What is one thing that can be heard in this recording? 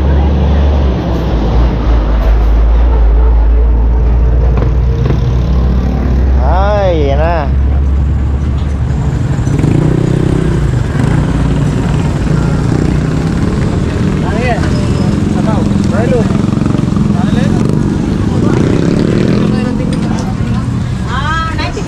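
Motorbikes and tricycles putter past on the street.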